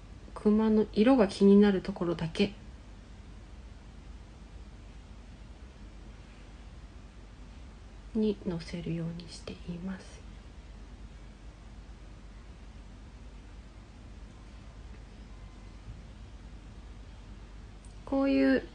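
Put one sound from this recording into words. A young woman speaks softly and close by, in short bursts.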